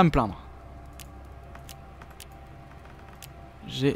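Soft interface clicks tick as a game menu is used.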